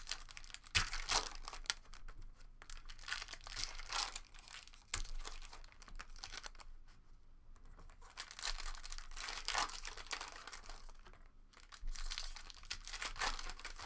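Plastic wrappers crinkle and rustle as packs are torn open.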